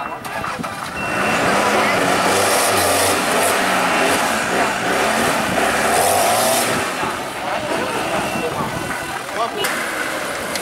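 An off-road 4x4 engine revs hard under load.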